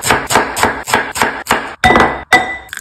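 A knife chops quickly through cabbage on a wooden board.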